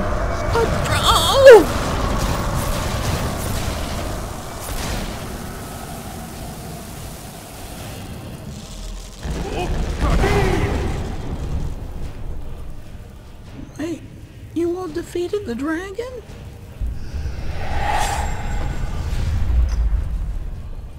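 A magical blast roars with a burst of rushing noise.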